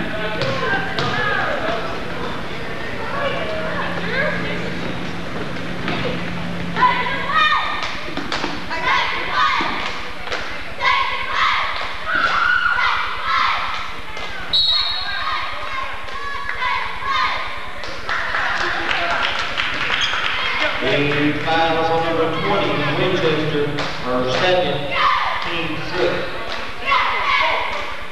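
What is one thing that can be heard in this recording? Young women shout to one another during play.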